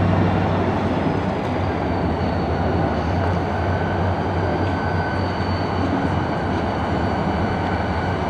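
Diesel locomotives idle with a deep, steady rumble.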